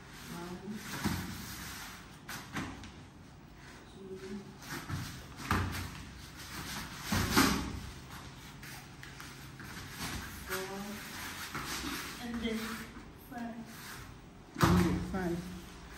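Bodies thump and scuffle on a padded mat.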